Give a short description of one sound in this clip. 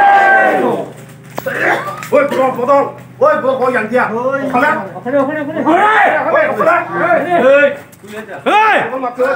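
Several men talk and shout over one another.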